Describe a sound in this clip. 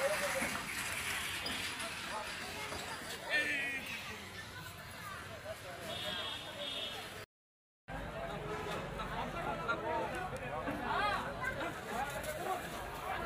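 Several men shout and call out outdoors.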